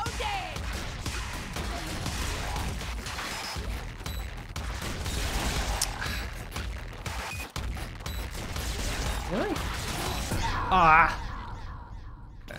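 Game gunfire and explosions rattle constantly.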